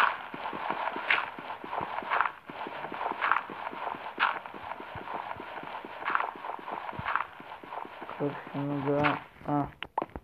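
Digging crunches in quick, repeated bursts.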